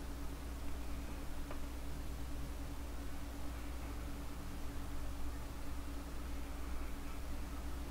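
A jet airliner's engines drone steadily.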